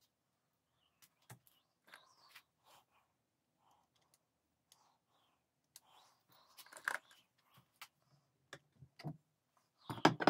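Small metal parts click and tap as a rifle sight is adjusted by hand.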